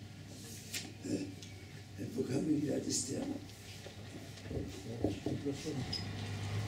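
An elderly man speaks quietly, close by.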